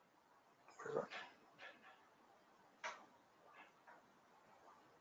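A middle-aged man speaks briefly and quietly into a close microphone.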